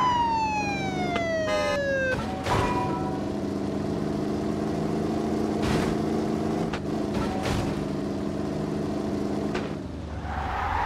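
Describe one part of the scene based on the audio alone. A car engine roars steadily at high speed, then drops away as the car slows.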